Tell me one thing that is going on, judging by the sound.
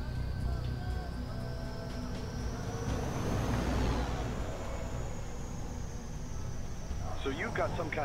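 A sports car engine roars as the car drives past.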